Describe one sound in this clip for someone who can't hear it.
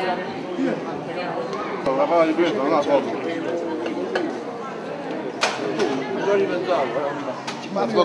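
Men talk and chat with animation at a table nearby.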